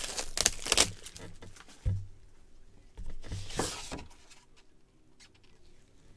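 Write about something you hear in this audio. A cardboard box lid scrapes and thumps as it is opened.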